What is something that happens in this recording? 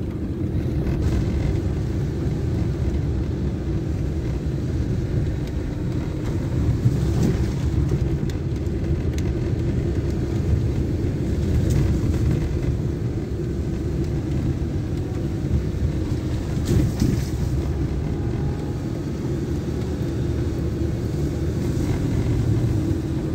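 The car body rattles and knocks over bumps.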